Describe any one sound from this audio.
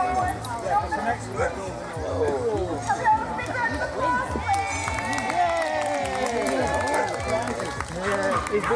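Men and women chat and call out nearby outdoors.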